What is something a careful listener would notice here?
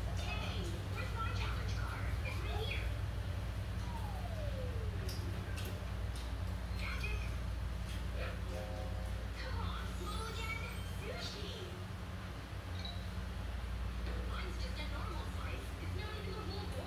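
Children talk and chatter nearby.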